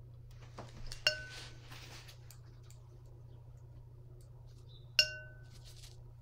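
A paintbrush clinks against a metal paint box.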